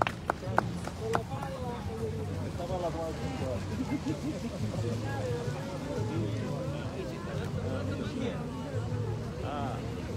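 Several men talk nearby at once, outdoors among a crowd.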